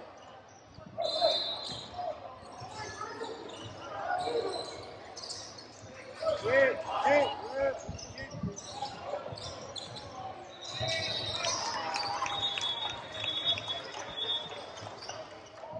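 Sneakers squeak sharply on a hard court floor in an echoing gym.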